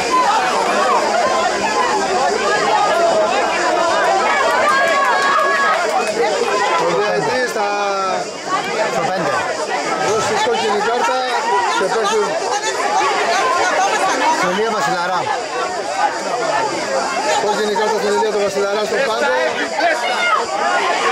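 Football players shout to each other across an open outdoor pitch.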